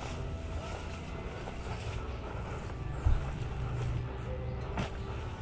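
Footsteps rustle through grass close by.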